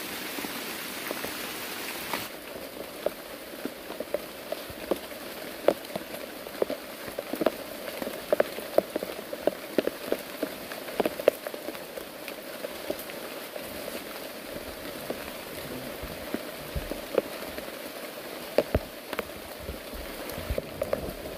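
Heavy drops patter and tap loudly on nearby leaves.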